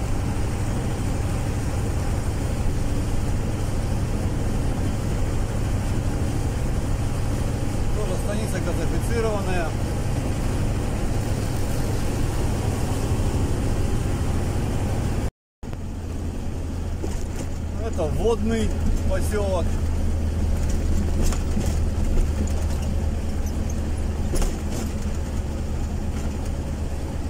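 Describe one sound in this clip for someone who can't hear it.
Tyres hum on the road surface.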